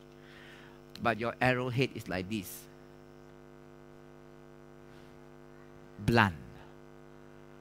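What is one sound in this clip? A man speaks through a microphone in short bursts.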